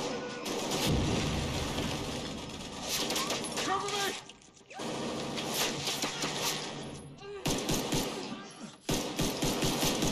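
Guns fire in rapid, loud bursts that echo in a large hall.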